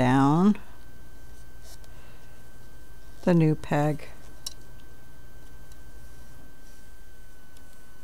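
A hook clicks softly against the pegs of a knitting loom.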